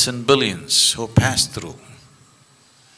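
An elderly man speaks calmly and expressively into a microphone.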